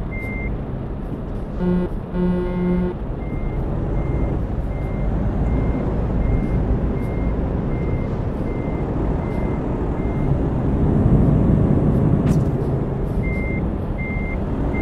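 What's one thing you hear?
A turn signal ticks in a steady rhythm.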